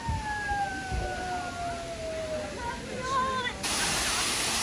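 A wolf howls in a long, falling tone.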